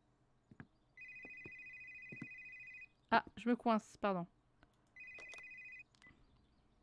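A phone rings with a repeating electronic tone.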